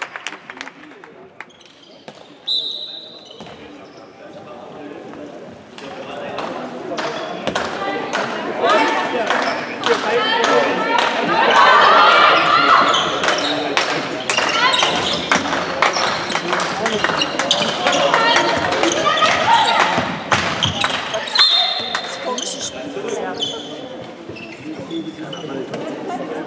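A ball bounces on the floor.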